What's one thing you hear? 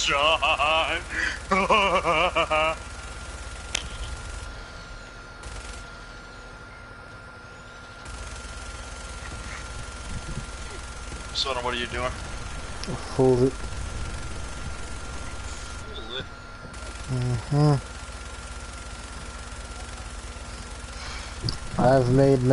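A heavy machine gun fires in long rapid bursts.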